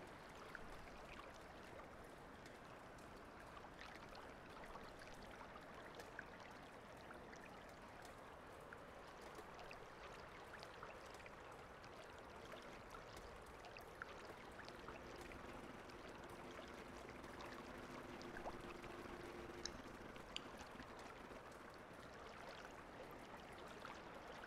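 Heavy rain falls.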